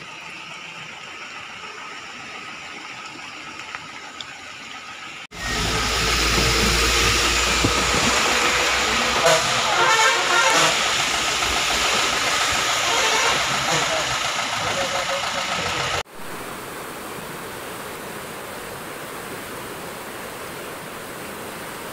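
Floodwater rushes and churns loudly over the ground.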